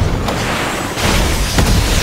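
A rocket fires with a loud, rushing blast.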